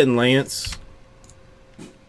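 Keys clack on a computer keyboard as someone types.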